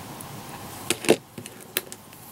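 A hobby knife is set down on a table with a tap.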